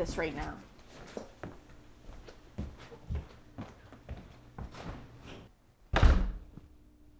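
A middle-aged woman answers gently.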